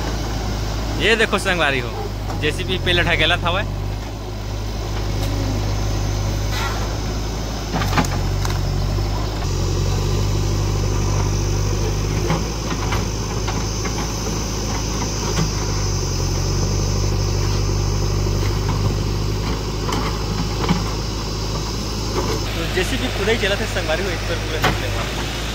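An excavator engine rumbles steadily nearby.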